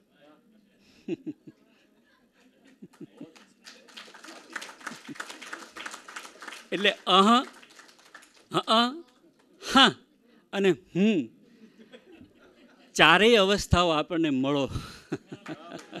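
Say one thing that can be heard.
A middle-aged man speaks cheerfully into a microphone.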